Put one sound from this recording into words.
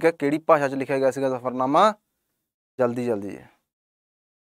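A man speaks clearly into a close microphone, explaining at a steady pace.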